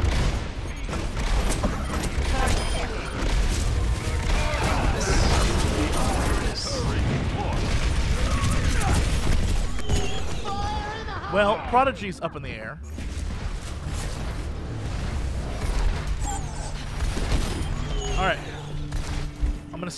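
Rapid gunfire blasts loudly and repeatedly.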